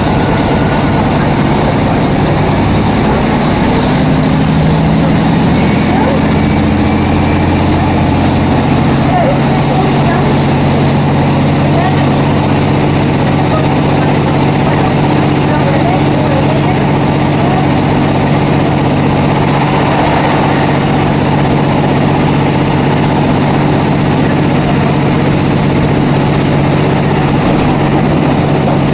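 A train rumbles steadily along the tracks, its engine droning low.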